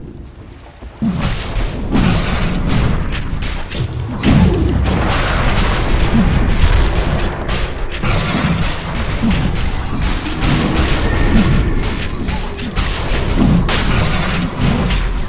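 Game spells and weapon blows clash and boom in a battle.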